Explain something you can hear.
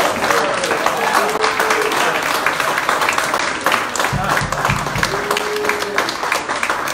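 A jazz band plays live in a room.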